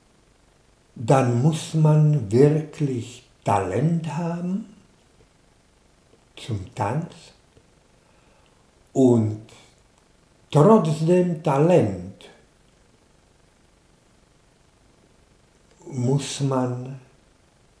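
An elderly man speaks calmly in pauses, close by.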